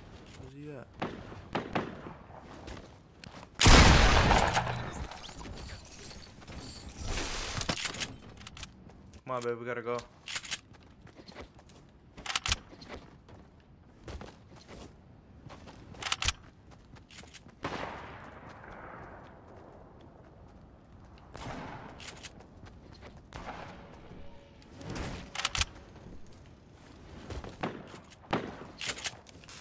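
Gunshots from a video game crack sharply now and then.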